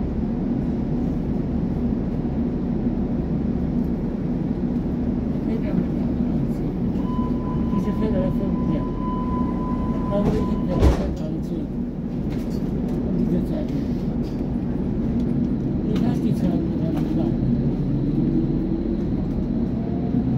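A train hums steadily at a platform.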